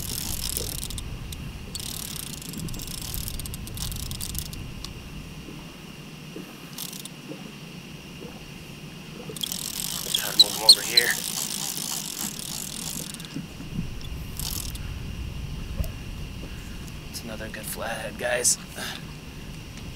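Wind blows outdoors over open water.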